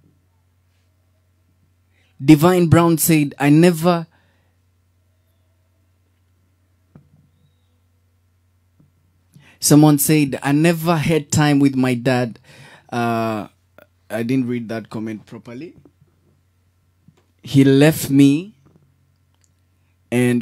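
A young boy speaks into a close microphone.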